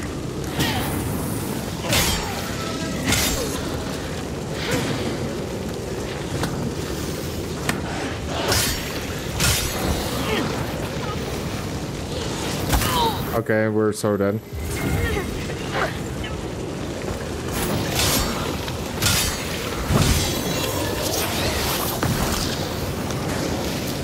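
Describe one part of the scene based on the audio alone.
Blades clash and strike in sharp, repeated hits.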